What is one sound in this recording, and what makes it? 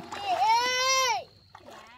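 Shallow water trickles over stones.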